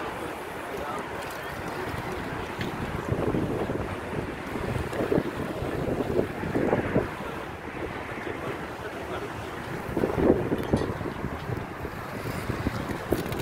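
Wind blusters outdoors, rumbling steadily with a few stronger gusts.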